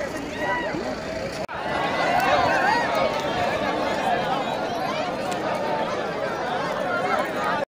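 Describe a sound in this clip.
A large crowd of men and women chatters and shouts loudly outdoors.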